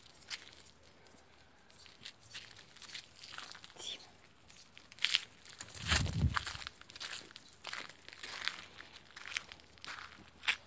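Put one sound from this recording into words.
Dogs' paws patter and scuffle on dirt close by.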